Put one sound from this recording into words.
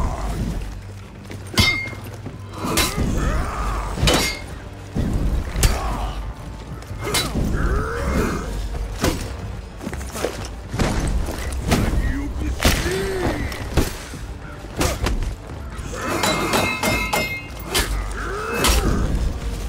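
Metal weapons clash and strike with sharp clangs.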